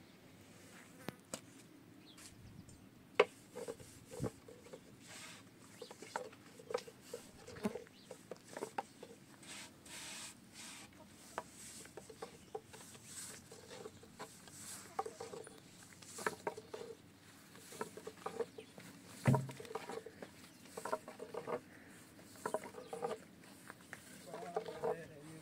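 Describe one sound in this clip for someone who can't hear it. Dough is patted and slapped by hand, with soft taps and knocks.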